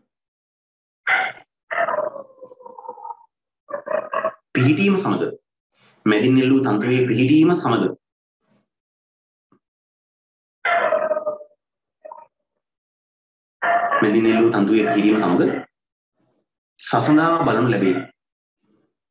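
A man speaks calmly in short bursts close to a microphone, with pauses between.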